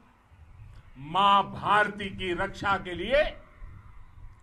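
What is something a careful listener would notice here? An elderly man speaks forcefully into a microphone, heard through a loudspeaker outdoors.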